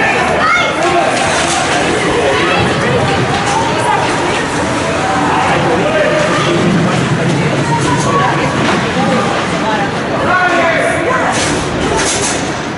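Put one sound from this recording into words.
Skates scrape and swish across ice.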